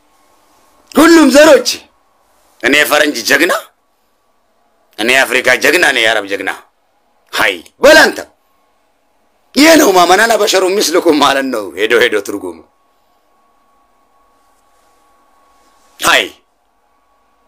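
A young man speaks with animation close to a microphone, in short bursts with pauses.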